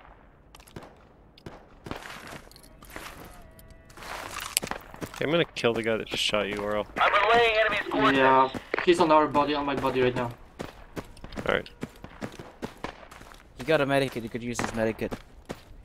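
Footsteps crunch on dry, stony ground.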